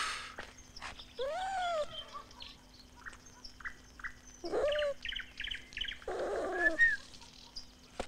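A fox yelps and whines in high cries.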